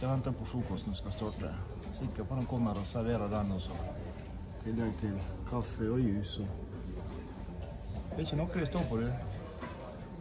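A middle-aged man talks calmly and close up.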